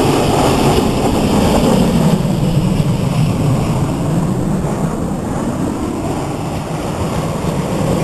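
Steam hisses loudly from a passing locomotive.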